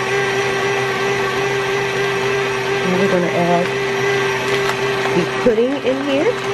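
An electric stand mixer whirs steadily as its whisk beats in a metal bowl.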